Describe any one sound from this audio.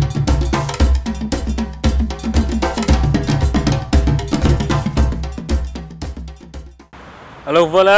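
Hand drums beat in a fast, steady rhythm.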